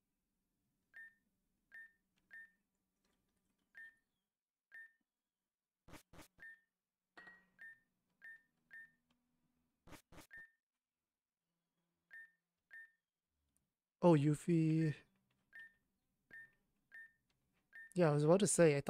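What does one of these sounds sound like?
Short electronic blips chirp quickly one after another.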